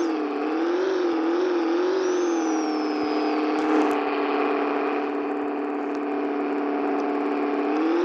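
A car engine hums steadily, its pitch wavering slightly.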